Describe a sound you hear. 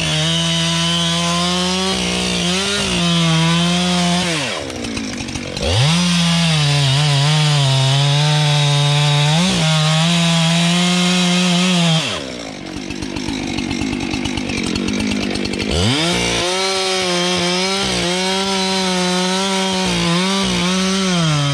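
A chainsaw roars loudly close by, dropping to an idle and revving up again.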